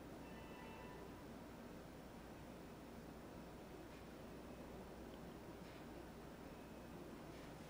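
A brush softly strokes paint onto a canvas.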